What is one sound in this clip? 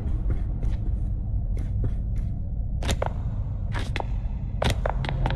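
Footsteps tap on a hard floor at a walking pace.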